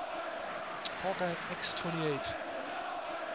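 A young man speaks briefly and casually into a nearby microphone.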